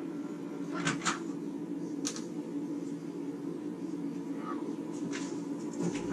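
A microwave door bangs open and shut.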